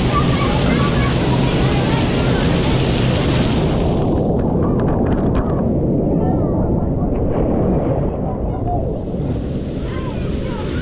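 Children shout and call out nearby.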